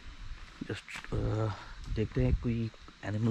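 A young man speaks calmly, close to the microphone, outdoors.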